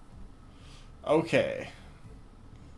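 A man talks close to a microphone with animation.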